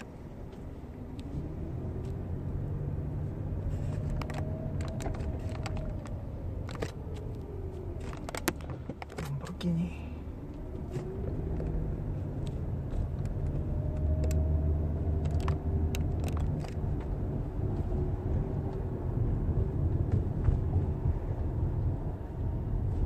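A car engine hums steadily as it drives, with the pitch slowly rising and falling.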